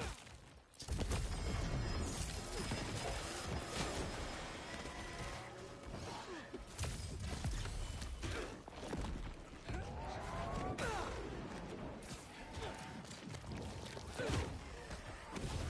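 Punches and kicks land with heavy thuds in a fast fight.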